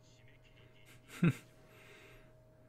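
A young man laughs briefly, close to a microphone.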